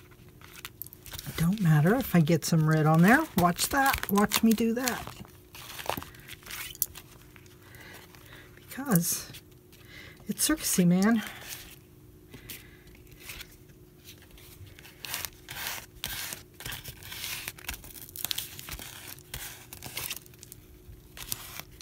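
A card scrapes and rubs across a sheet of paper.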